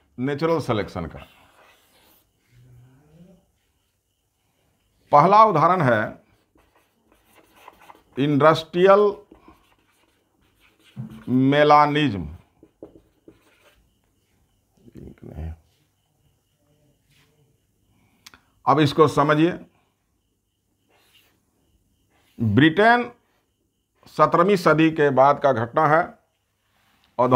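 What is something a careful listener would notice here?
A man speaks calmly in short phrases, with pauses between them.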